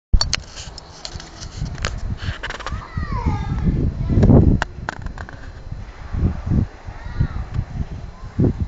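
Wind turbine blades whir as they spin.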